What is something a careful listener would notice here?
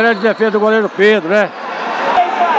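Spectators chant loudly nearby.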